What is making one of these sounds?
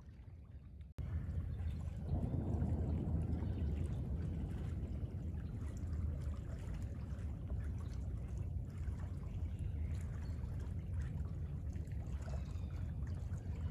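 A man wades through shallow water with steady splashing.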